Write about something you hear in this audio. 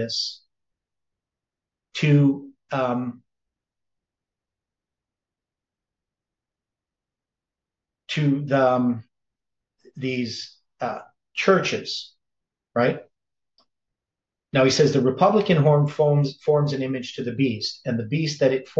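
An elderly man speaks calmly and close to a microphone, with long pauses.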